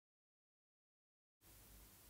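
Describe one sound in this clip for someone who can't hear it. Scissors snip.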